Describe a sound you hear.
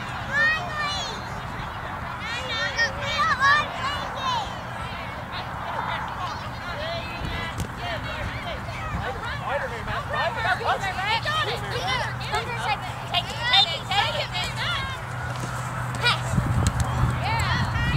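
Spectators nearby chatter and shout with excitement outdoors.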